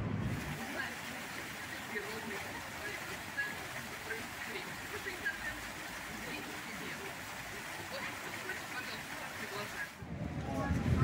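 Fountain jets splash steadily into a pool.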